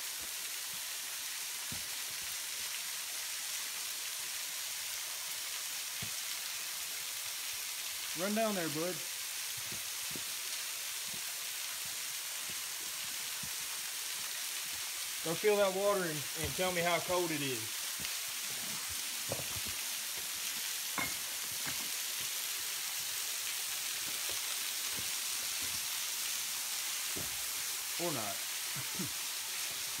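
A thin waterfall splashes steadily onto rocks.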